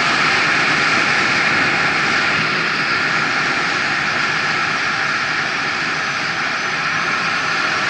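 Wind rushes loudly past, as if moving at speed.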